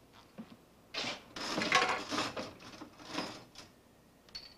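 Dishes clatter and clink at a sink.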